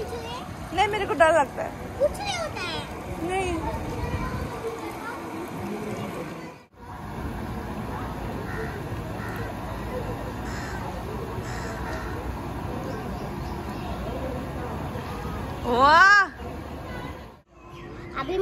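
Water splashes and sloshes in a pool.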